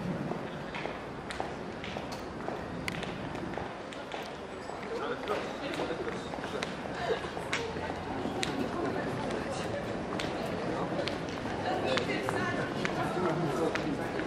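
Footsteps tap on stone steps and pavement.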